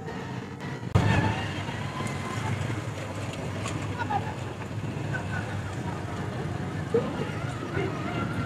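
A motorcycle engine runs and approaches.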